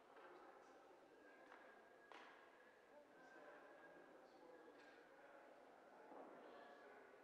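Footsteps echo through a large hall.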